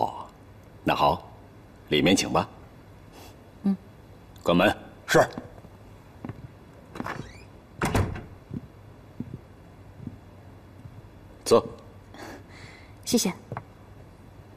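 A man speaks warmly and politely.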